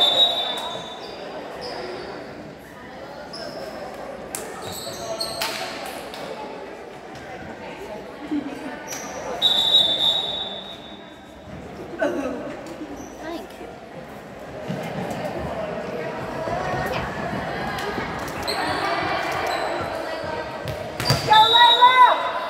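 Players and spectators chatter and call out in a large echoing gym.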